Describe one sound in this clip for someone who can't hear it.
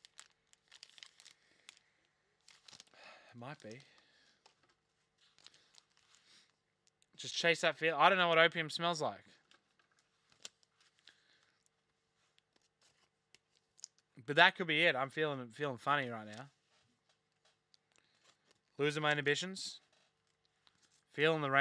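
Cardboard packs rustle and crinkle as they are torn open.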